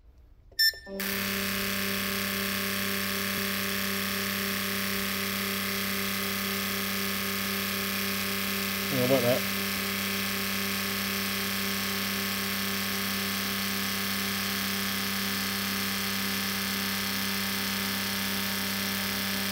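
Nozzles spray fluid into tubes with a steady hiss.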